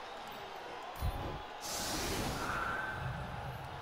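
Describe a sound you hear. A bright magical whoosh rings out with a deep rumble.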